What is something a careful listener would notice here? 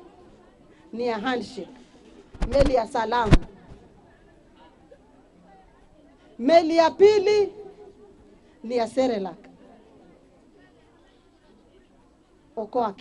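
A middle-aged woman speaks with emphasis into a microphone, in short bursts with pauses.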